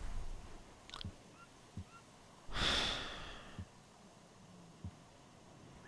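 Short interface clicks sound one after another.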